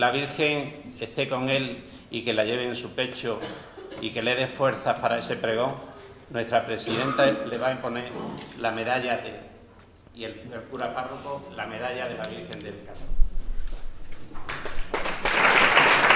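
A man speaks steadily through a microphone in an echoing hall.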